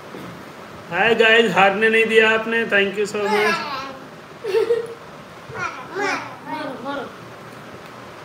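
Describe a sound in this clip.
A young man talks and laughs close by.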